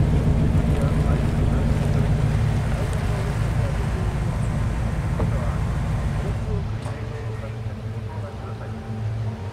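A car engine rumbles low, then quietens.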